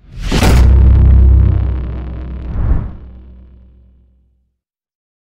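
Flames roar with a loud whoosh and fade away.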